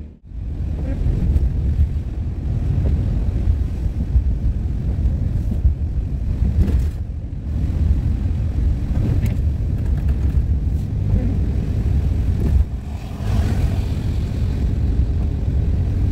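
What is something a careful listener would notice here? A windscreen wiper sweeps across wet glass.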